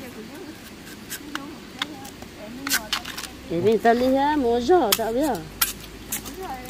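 A machete chops through bamboo shoots.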